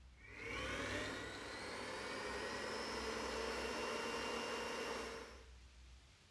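A stand mixer motor whirs up to speed and runs steadily.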